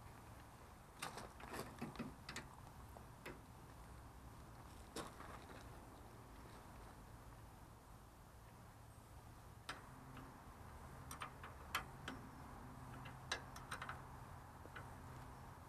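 Metal parts clank and click sharply.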